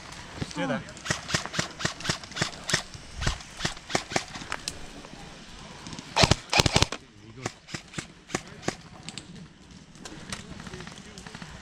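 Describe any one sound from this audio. Airsoft guns fire in rapid sharp snaps.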